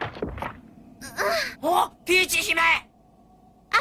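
A man speaks with surprise, as a cartoon voice.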